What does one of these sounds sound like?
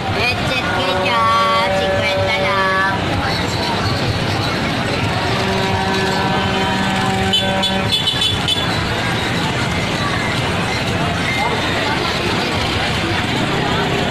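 A busy crowd murmurs and chatters outdoors.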